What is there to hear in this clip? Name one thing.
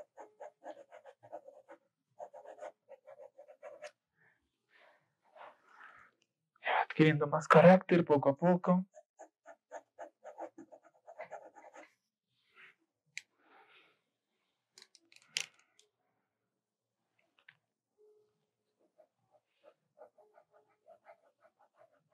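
A pencil scratches across paper in quick strokes.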